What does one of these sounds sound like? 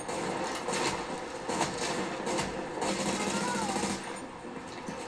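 Gunfire bursts from a video game through loudspeakers.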